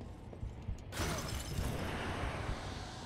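A magical blast bursts with a loud whoosh.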